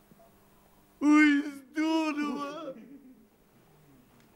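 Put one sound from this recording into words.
An older man speaks warmly and with animation.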